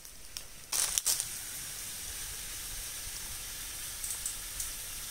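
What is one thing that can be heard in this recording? Water sprays and hisses from a hose onto dry leaves.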